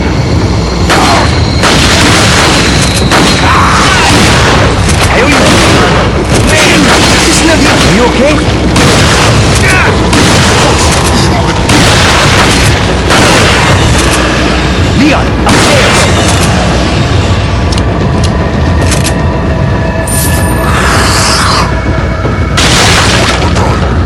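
A shotgun fires loud blasts, again and again.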